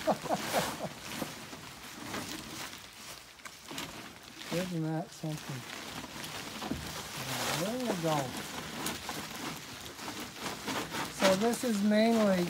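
Wool rustles as hands dig through it.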